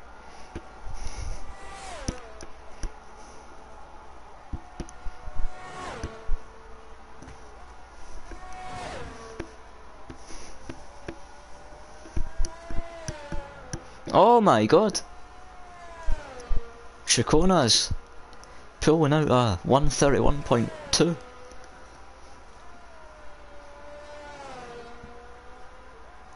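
A racing car engine whines at high revs, dropping in pitch with each gear change.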